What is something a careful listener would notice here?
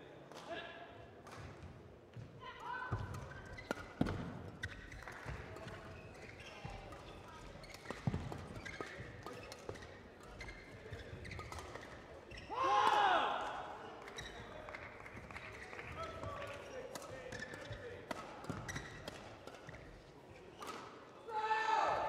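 A shuttlecock is struck sharply by rackets, back and forth.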